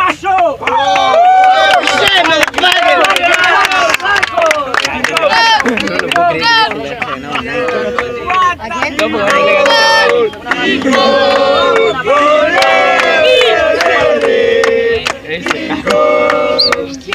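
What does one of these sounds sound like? A crowd of teenage boys cheers and shouts.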